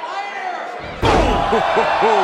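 A body slams heavily onto a wrestling ring mat with a loud thud.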